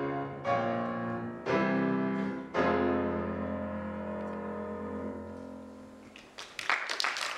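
A piano plays loud final chords that ring out and fade.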